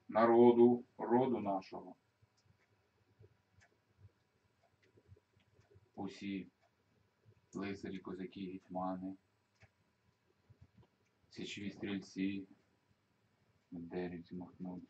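A middle-aged man speaks calmly nearby, in short phrases with pauses.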